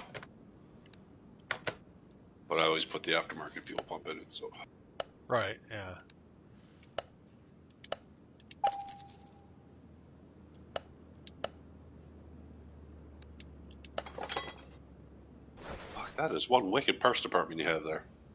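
Short interface clicks tick as menu options change.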